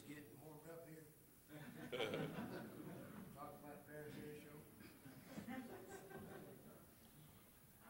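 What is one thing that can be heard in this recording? A man speaks quietly from a distance.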